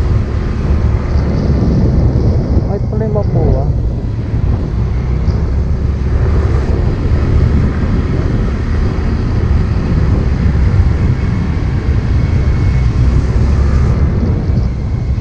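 A motor scooter engine hums steadily while riding.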